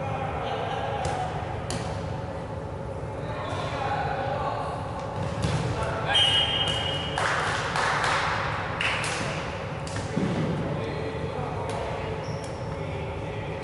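Balls thud and smack as they are thrown and hit.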